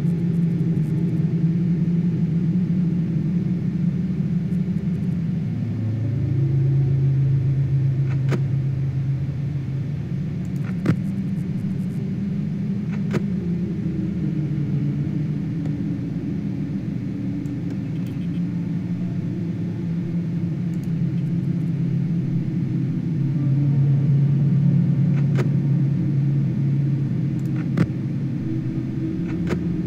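A low electrical hum drones steadily throughout.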